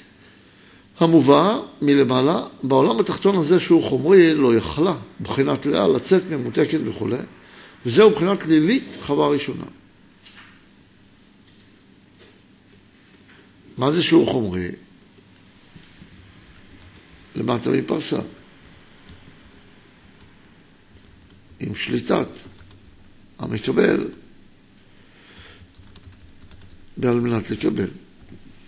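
A middle-aged man speaks calmly into a close microphone, in bursts with pauses.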